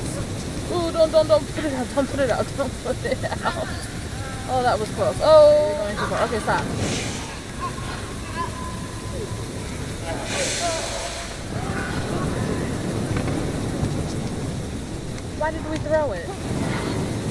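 A young woman talks casually into a headset microphone.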